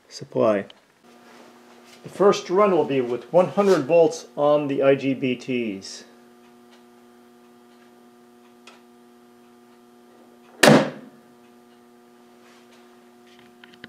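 An electrical device hums steadily.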